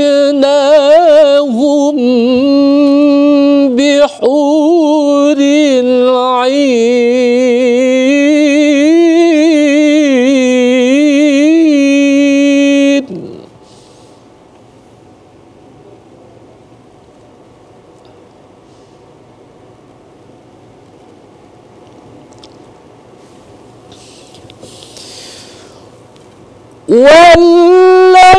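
A man chants in a loud, melodic, sustained voice through a microphone.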